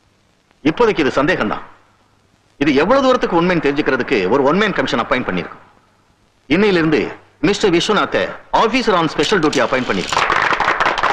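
A man speaks forcefully through a microphone.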